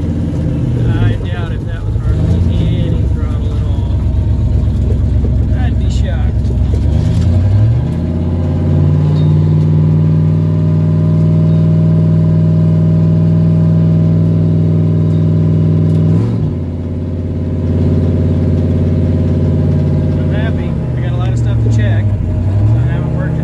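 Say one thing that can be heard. A car engine hums and revs steadily as the car drives along.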